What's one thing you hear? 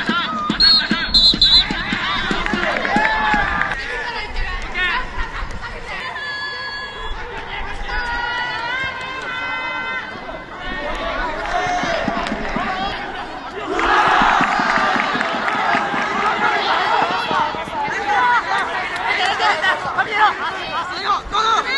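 Lacrosse sticks clack together.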